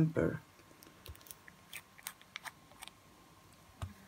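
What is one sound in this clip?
A small plastic cap clicks and scrapes against a glass bottle.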